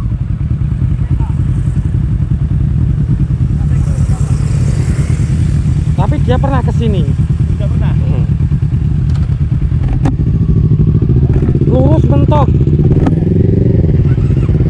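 A motorcycle engine idles close by with a steady low rumble.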